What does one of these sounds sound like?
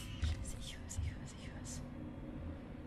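Keys on a handheld electronic device beep as they are pressed.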